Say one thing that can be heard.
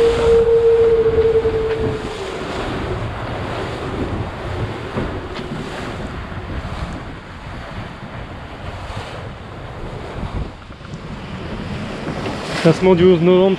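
Strong wind blows across the open sea.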